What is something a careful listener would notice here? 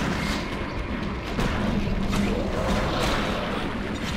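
Heavy blows thud and crash during a fight.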